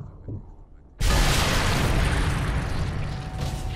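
A rifle shot booms loudly and echoes away.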